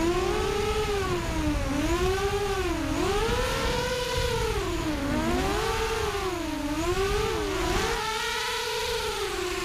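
The motors of a small racing drone whine, rising and falling in pitch as it swoops and turns.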